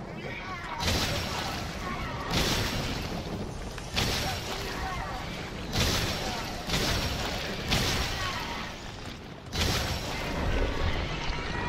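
A handgun fires loud shots one after another, each echoing briefly.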